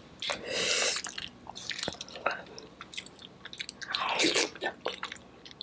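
A woman slurps noodles loudly close to a microphone.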